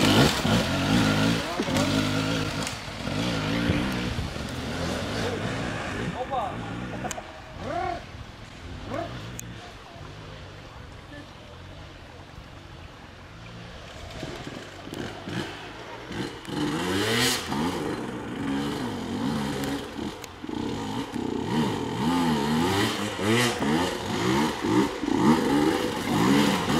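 Dirt bike engines rev and sputter close by, rising and falling in pitch.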